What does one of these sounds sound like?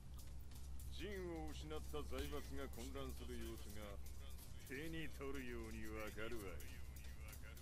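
An elderly man speaks slowly in a low, gruff voice.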